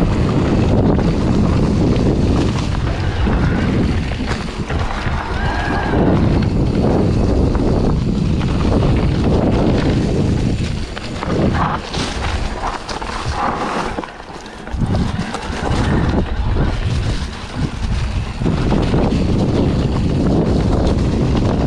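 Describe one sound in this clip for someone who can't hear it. Bicycle tyres crunch and rattle over a dry, leafy dirt trail.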